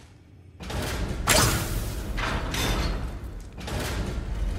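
A heavy wooden chest lid creaks and thuds open.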